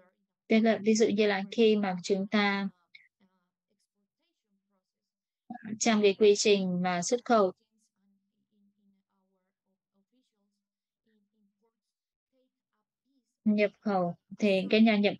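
A young woman speaks calmly over an online call, with pauses.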